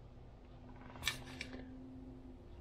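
A stiff card rustles as it is picked up.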